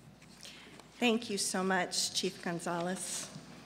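A woman speaks into a microphone.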